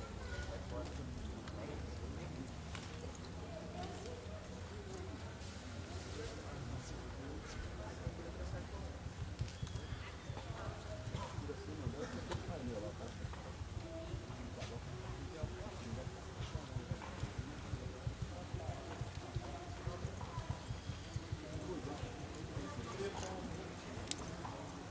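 Hooves thud softly on soft dirt.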